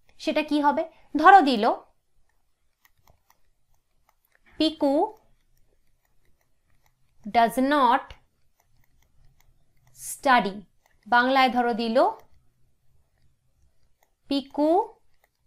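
A young woman speaks calmly and clearly into a close microphone, in short phrases with pauses.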